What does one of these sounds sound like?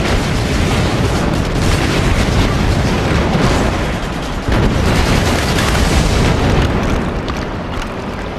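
Explosions boom and rumble in a video game.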